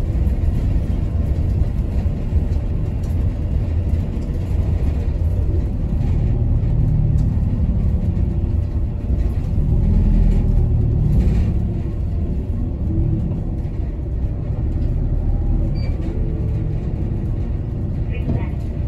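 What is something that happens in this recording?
Tyres roll over a snowy road.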